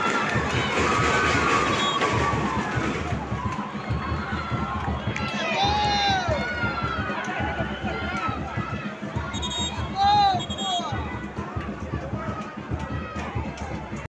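A crowd of spectators shouts and calls out from the stands nearby.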